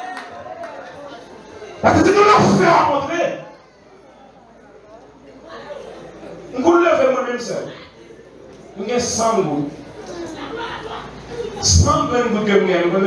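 A young man preaches with animation into a microphone, heard through loudspeakers in an echoing hall.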